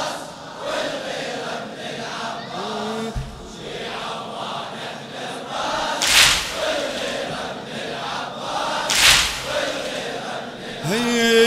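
A large crowd chants together outdoors.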